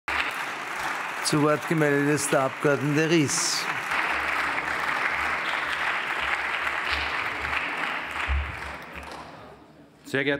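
A large crowd applauds steadily in a large hall, then fades.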